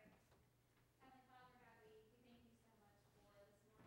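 A child speaks into a microphone.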